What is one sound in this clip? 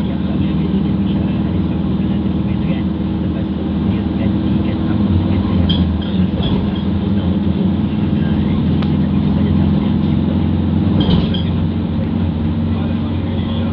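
Tyres roar on the road at speed.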